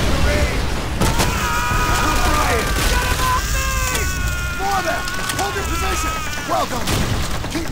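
Rifle shots fire in quick bursts.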